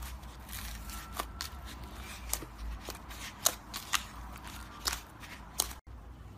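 Fingers press and squish wet slime with sharp crackling pops.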